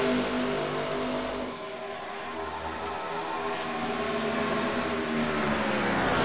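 Race car engines roar steadily at high speed.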